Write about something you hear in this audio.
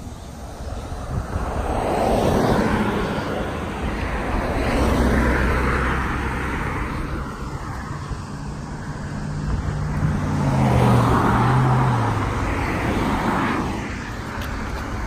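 Cars drive past on a road, their tyres rushing.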